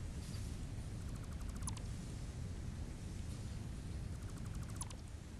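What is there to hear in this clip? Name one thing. Rapid soft ticking clicks play, ending in a short chime.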